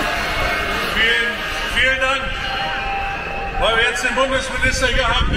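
A man speaks through loudspeakers with echo in the open air.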